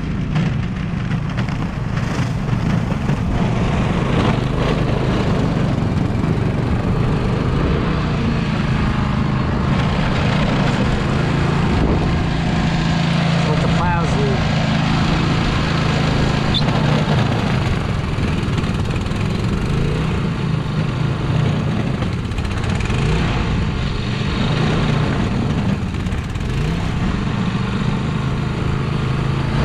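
A snow blower engine roars steadily close by.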